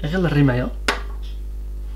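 A shotgun shell knocks down onto a glass tabletop.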